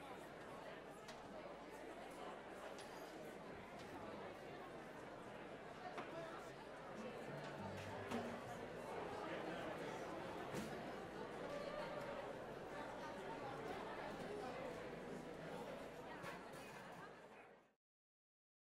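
Chairs and music stands clatter as musicians pack up.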